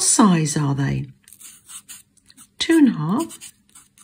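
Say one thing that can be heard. A felt-tip marker scratches softly on paper.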